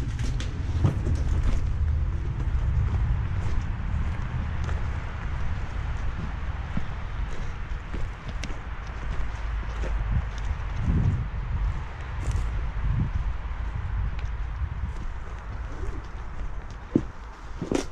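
Footsteps rustle through long grass.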